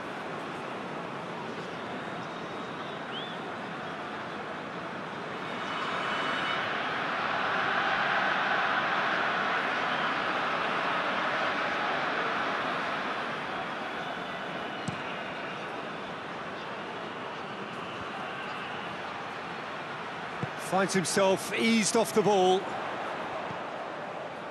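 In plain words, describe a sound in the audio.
A stadium crowd roars steadily, swelling louder for a while before settling back.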